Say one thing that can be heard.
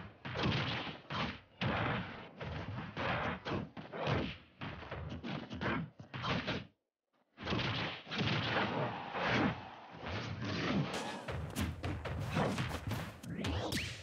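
Quick swishes whoosh through the air.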